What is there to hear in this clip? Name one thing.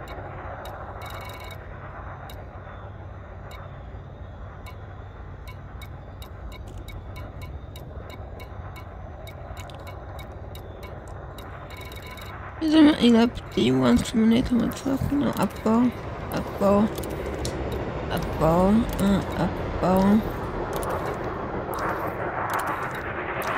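Soft interface clicks tick as a menu list scrolls.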